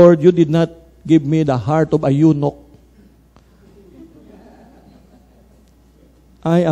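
A middle-aged man speaks calmly and slowly into a close microphone, with long pauses.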